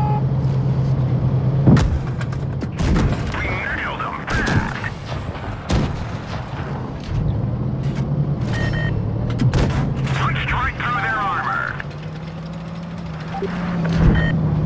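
A tank engine rumbles and drones steadily.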